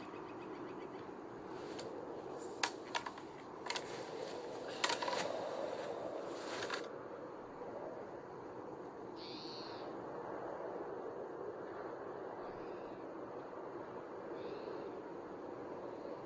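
Wind blows steadily across open snow.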